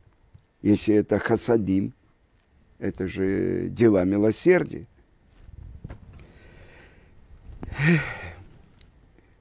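An elderly man speaks with animation, close to a microphone.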